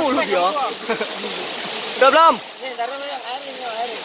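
A waterfall rushes into a pool.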